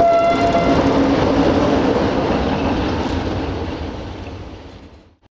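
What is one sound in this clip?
A train rumbles past close by and fades into the distance.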